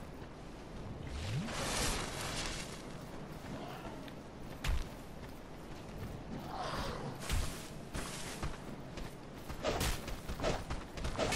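Running footsteps crunch on dry leaves and stone.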